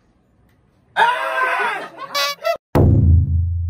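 Young men shout in surprise nearby.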